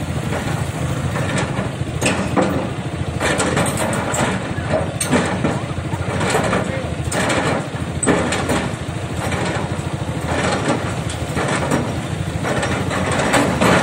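A heavy excavator engine rumbles and chugs steadily nearby.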